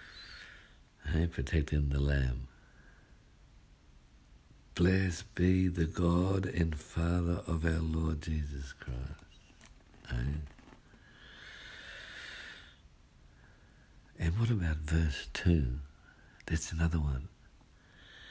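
A man speaks in short bursts close by.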